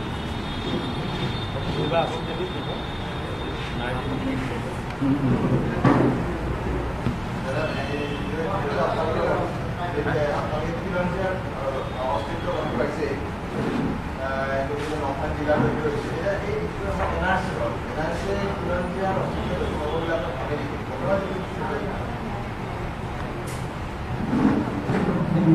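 A middle-aged man speaks calmly into microphones.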